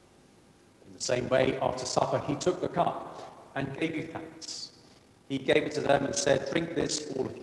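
A middle-aged man speaks calmly into a microphone in a large echoing hall.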